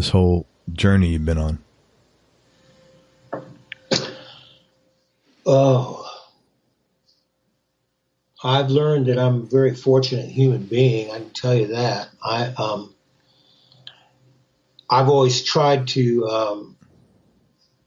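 A man speaks into a microphone in short phrases with pauses.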